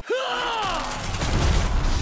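Electricity crackles and sizzles.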